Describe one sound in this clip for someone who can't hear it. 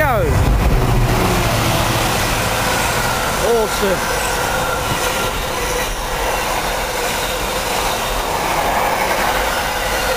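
A long freight train rumbles and clatters steadily along the rails.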